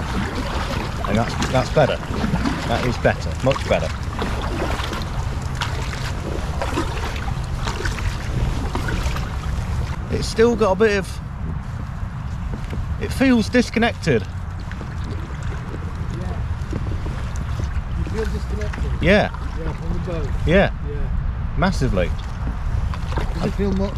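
A paddle splashes and drips in water.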